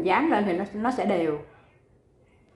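A middle-aged woman speaks with animation close to a microphone.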